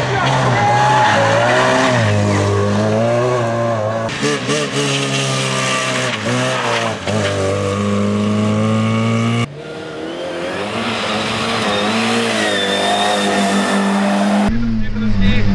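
A rally car engine revs hard and roars past.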